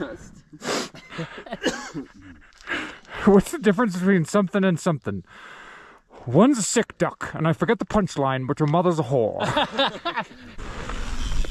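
Several men chat casually close by.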